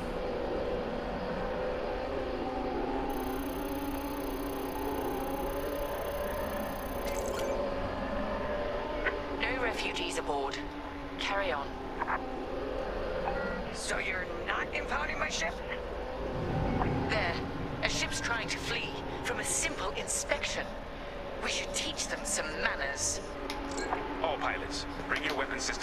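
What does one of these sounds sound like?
A starfighter engine hums steadily.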